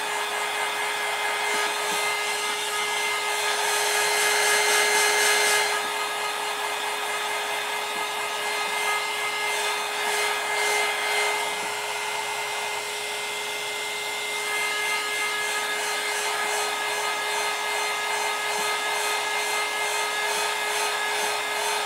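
A small motor hums steadily as it turns.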